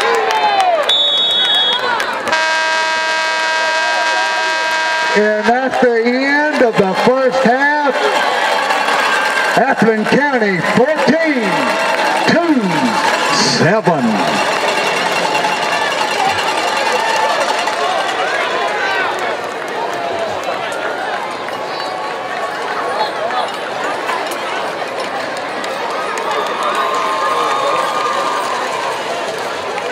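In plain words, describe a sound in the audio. A large crowd cheers in a stadium.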